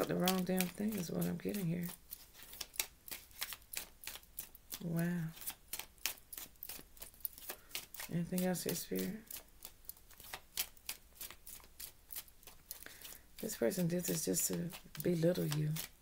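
Playing cards riffle and flick as they are shuffled.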